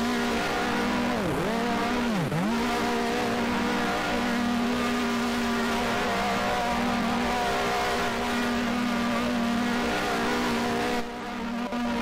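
A racing car engine whines steadily from close by.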